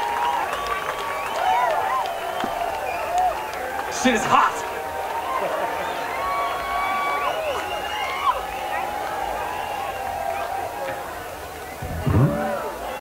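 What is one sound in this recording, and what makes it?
A rock band plays live music through loudspeakers outdoors.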